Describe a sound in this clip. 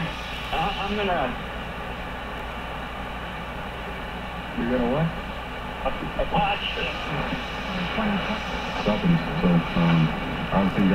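An old radio hisses and hums steadily.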